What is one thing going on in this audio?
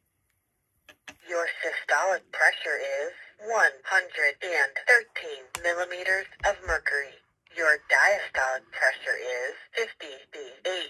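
A middle-aged woman speaks calmly and close to a phone microphone.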